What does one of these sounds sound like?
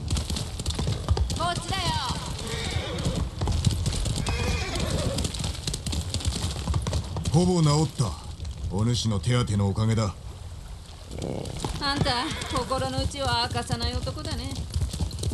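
A horse gallops with quick, heavy hoofbeats.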